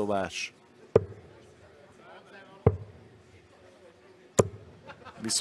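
Darts thud into a dartboard, three times in a row.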